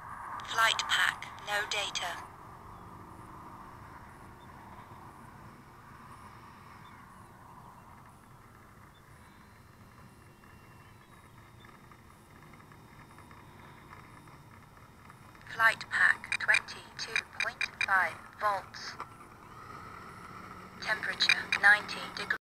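A small model plane's motor buzzes steadily overhead.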